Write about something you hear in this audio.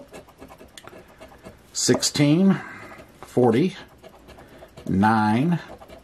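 A coin scratches across a paper card.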